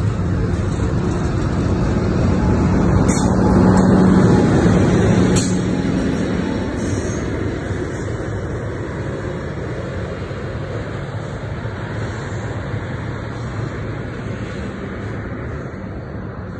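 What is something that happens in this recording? A passenger train rumbles past close by and fades into the distance.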